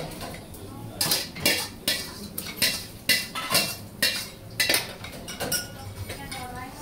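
A metal ladle clangs and scrapes against a wok.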